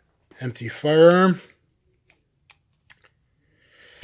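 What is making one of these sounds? A revolver's cylinder clicks shut.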